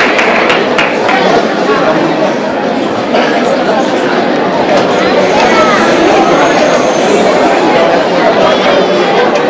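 An orchestra plays.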